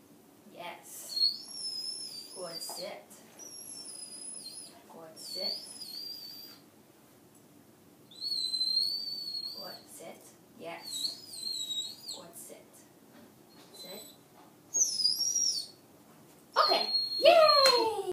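A man speaks calmly to a dog nearby.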